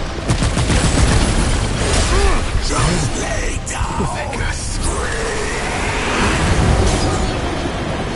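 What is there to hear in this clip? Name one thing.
A monster roars and snarls.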